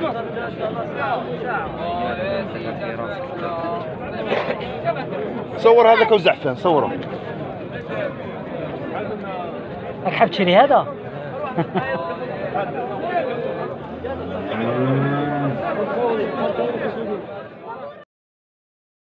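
A crowd of men talk and call out nearby, outdoors.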